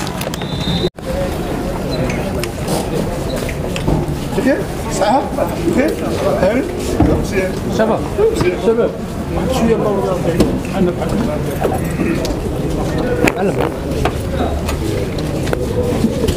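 Several men talk at once nearby, outdoors.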